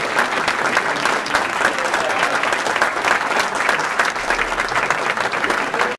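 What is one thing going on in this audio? An audience of people claps along in rhythm.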